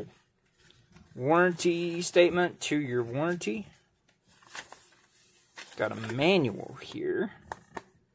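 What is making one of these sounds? Paper rustles as a sheet is unfolded.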